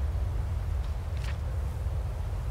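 A book page turns with a papery rustle.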